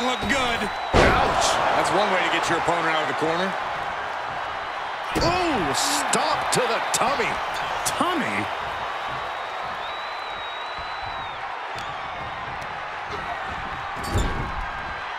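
Heavy body slams thud on a wrestling mat.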